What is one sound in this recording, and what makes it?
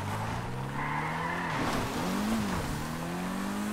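Tyres screech on tarmac as a car spins.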